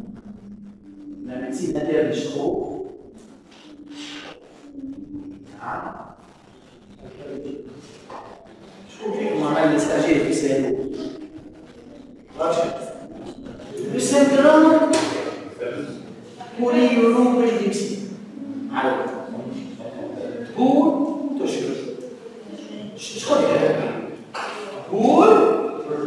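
A middle-aged man speaks with animation in a room with a slight echo.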